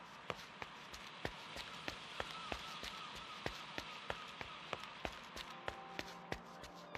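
Quick footsteps tap on stone paving.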